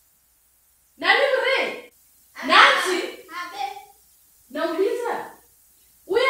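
A woman shouts loudly in a room.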